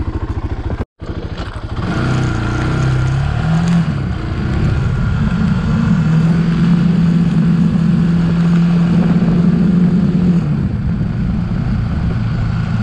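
A small off-road vehicle engine drives along a bumpy dirt track.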